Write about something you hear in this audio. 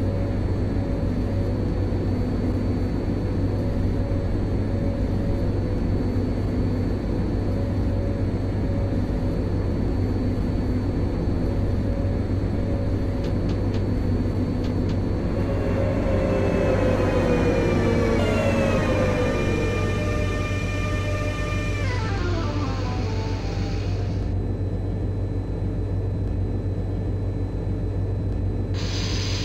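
An electric train's motors hum steadily from inside the cab.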